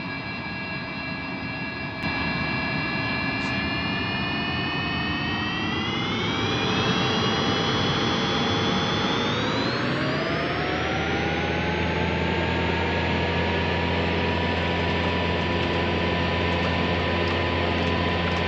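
Jet engines whine and rise in pitch as they spool up to full power.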